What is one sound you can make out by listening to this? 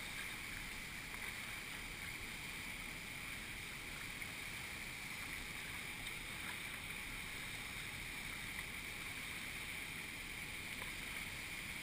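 Fast river water rushes and churns close by.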